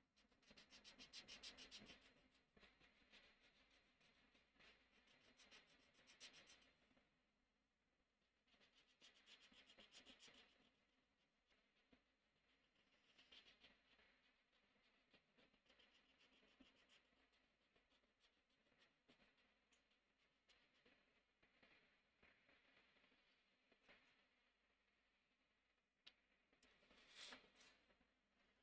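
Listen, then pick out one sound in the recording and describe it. A marker tip scratches and squeaks across paper close by.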